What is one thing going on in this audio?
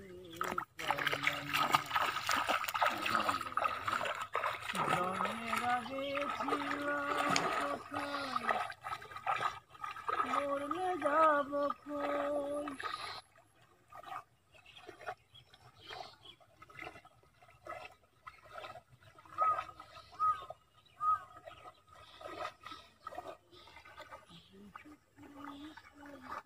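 A man wades through shallow water with splashing steps.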